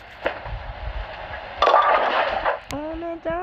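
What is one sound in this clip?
Bowling pins crash and clatter as a ball strikes them.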